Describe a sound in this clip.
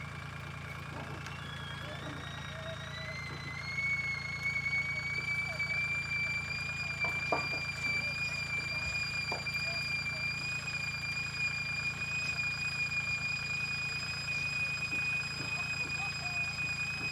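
A tractor engine whines, rising in pitch and then holding steady.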